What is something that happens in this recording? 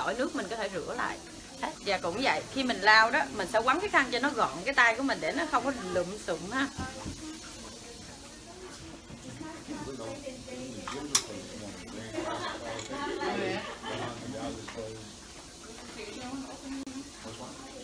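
A woman speaks calmly and clearly, close by.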